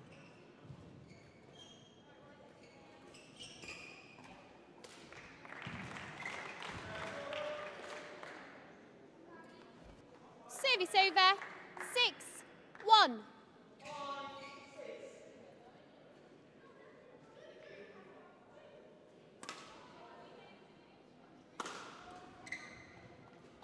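A racket strikes a shuttlecock with sharp pops in an echoing hall.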